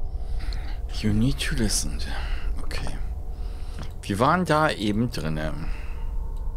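A woman talks quietly into a microphone.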